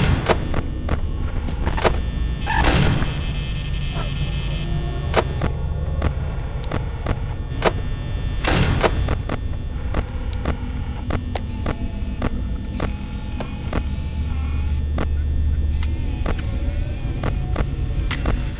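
Sharp clicks come again and again as views switch.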